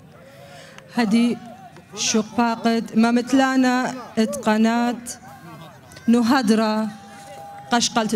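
A young woman speaks into a microphone, announcing in a clear voice.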